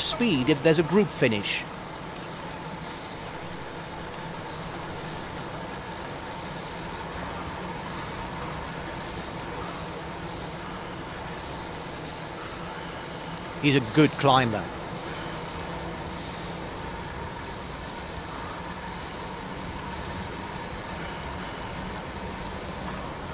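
A pack of bicycles whirs along a road.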